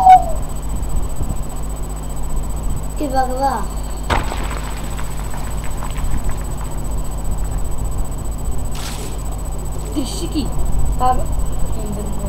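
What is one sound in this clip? A young boy speaks briefly and quietly, close to a microphone.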